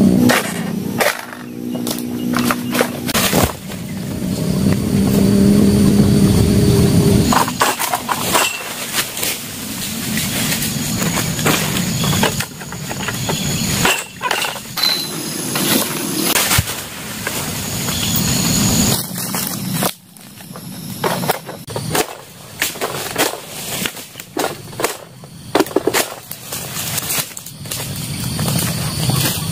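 A pole blade scrapes and saws at palm fronds.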